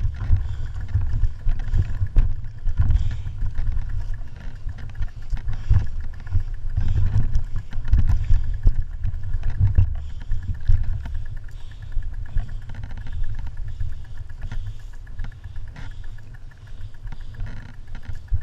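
Bicycle tyres roll and bump over a rough dirt track.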